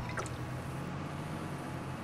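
A man gulps a drink from a bottle.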